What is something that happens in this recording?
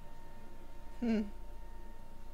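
A young man makes a short, loud exclamation.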